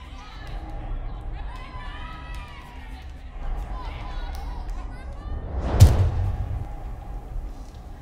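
Several women shout and cry out in panic.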